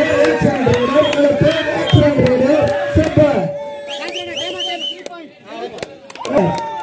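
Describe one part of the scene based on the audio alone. A crowd of men shouts and cheers excitedly outdoors.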